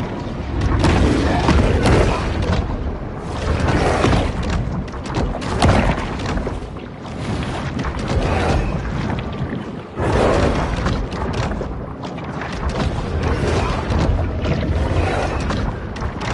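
A shark bites and thrashes at its prey with heavy thuds.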